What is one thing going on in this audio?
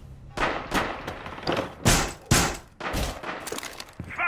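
Loud thuds and crashes ring out.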